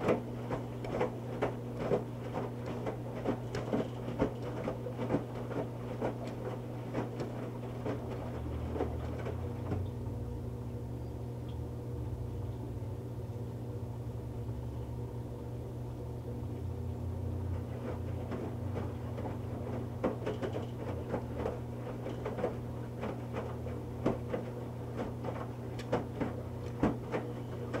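A washing machine drum hums steadily as it turns.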